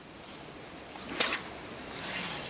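A fishing rod swishes through the air as a line is cast.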